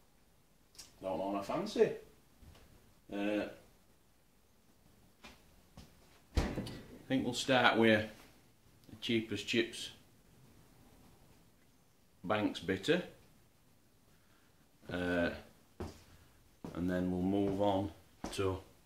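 A middle-aged man talks calmly and close by, in short bursts.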